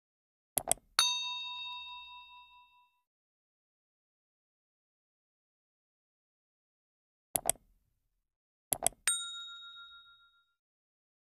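A bell chimes brightly and rings out.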